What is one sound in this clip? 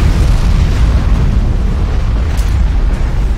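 A huge explosion booms and rumbles.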